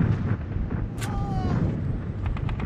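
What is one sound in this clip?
A rifle fires a single sharp shot that echoes.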